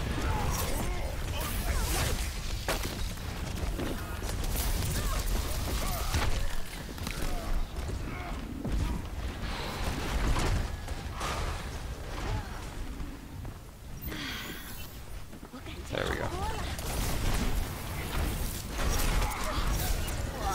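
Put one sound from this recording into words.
Video game gunfire crackles and bursts in quick volleys.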